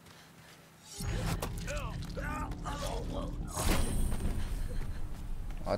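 A scuffle with heavy thuds and rustling breaks out.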